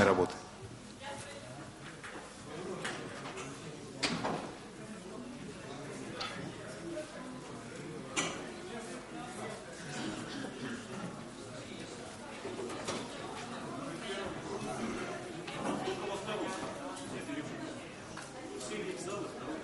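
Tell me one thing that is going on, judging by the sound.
Many men and women chatter at once in a large echoing hall.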